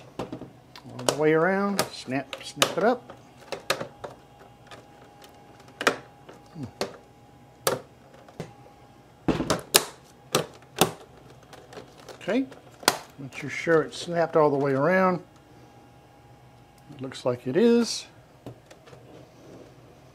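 Hard plastic knocks and clicks as a monitor is handled and turned.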